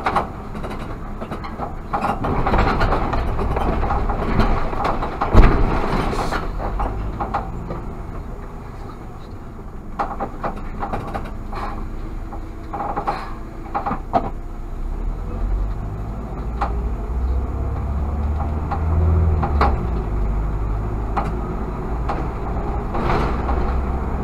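Tyres rumble and rattle over the road surface.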